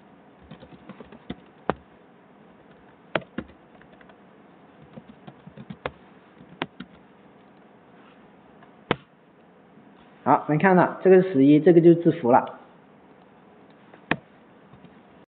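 Keys on a computer keyboard click as someone types.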